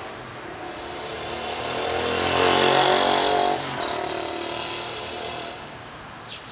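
A vehicle drives past on a street.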